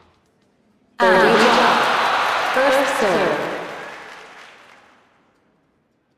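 A large crowd cheers and applauds, then fades away.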